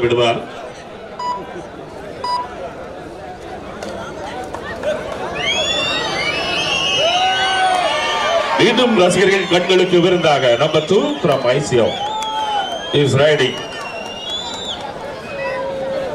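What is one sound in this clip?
A large crowd cheers and shouts, growing louder.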